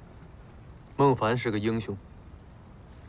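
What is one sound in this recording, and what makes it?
A second young man answers calmly close by.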